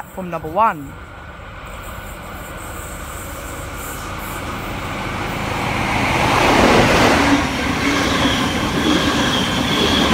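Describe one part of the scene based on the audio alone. A train approaches, growing louder, and rumbles past close by.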